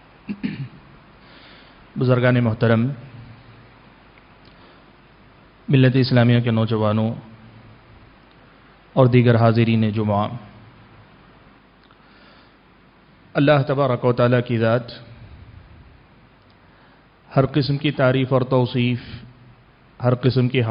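A man speaks slowly into a microphone in short phrases, with pauses between them.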